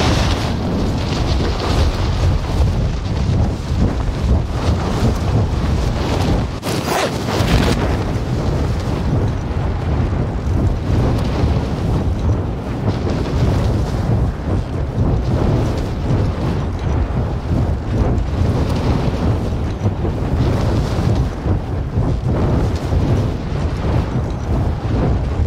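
Wind rushes loudly and steadily during a parachute descent.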